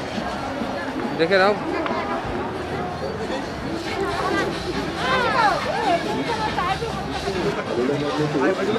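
A crowd of people chatters and calls out nearby, outdoors.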